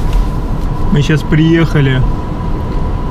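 A man talks in a car.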